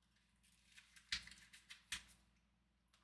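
Small plastic parts click and tap as fingers handle them.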